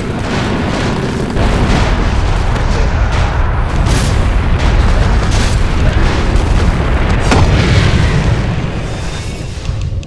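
Spells crackle and boom in a noisy fantasy battle.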